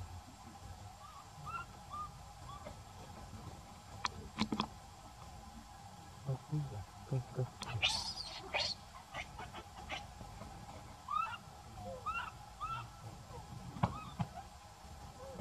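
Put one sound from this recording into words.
A baby monkey squeaks in short, high chirps.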